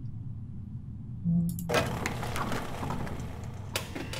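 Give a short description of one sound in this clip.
A window blind slides down and shuts.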